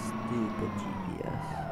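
A large diesel engine drops in pitch as the gear changes.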